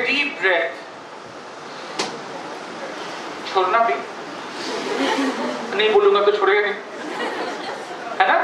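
A man speaks with animation into a microphone, heard through loudspeakers in an echoing hall.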